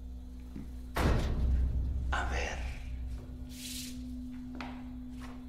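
A folder slaps down onto a table.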